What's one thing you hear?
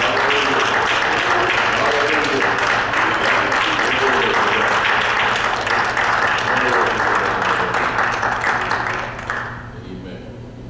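A man preaches loudly and with passion through a microphone in an echoing hall.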